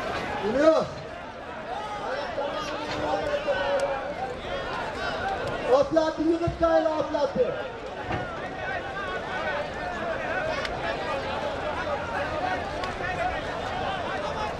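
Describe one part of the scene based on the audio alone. A large outdoor crowd of men chatters and shouts.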